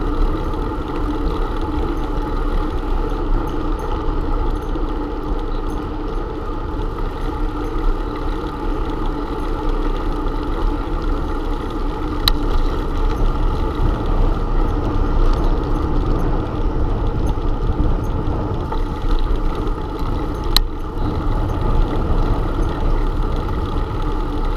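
Wind rushes steadily past a bicycle rider outdoors.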